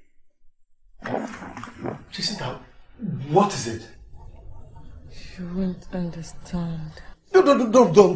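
A young woman speaks with distress.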